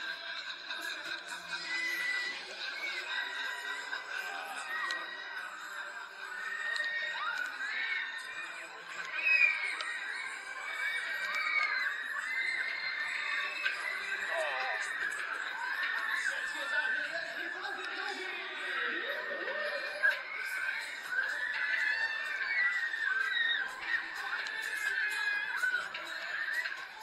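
Riders on a spinning fairground ride scream and shriek.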